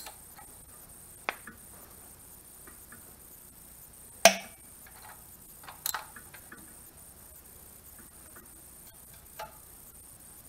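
A socket ratchet clicks on an engine's bolts.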